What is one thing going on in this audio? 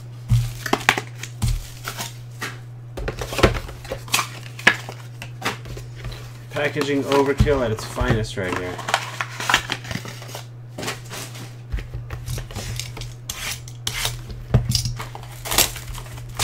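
Cardboard boxes rustle and tap as hands handle them.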